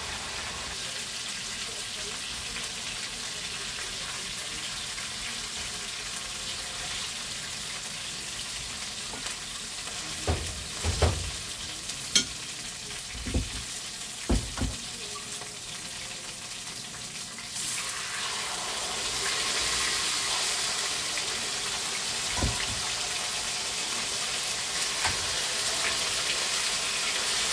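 Meat sizzles in a frying pan.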